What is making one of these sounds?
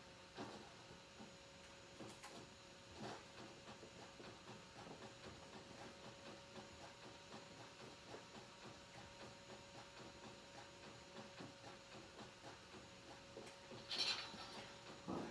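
Footsteps patter quickly and steadily on a hard floor.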